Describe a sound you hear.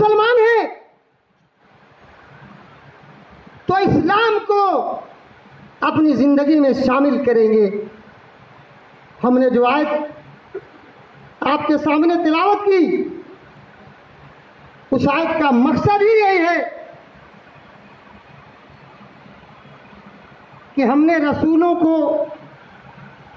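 An elderly man chants loudly through a microphone in bursts, heard over a loudspeaker in a large echoing hall.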